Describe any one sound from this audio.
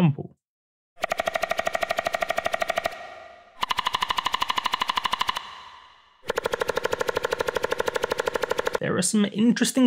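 Synth chords play in a steady rapid pulse.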